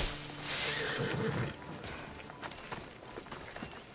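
Footsteps walk on dirt.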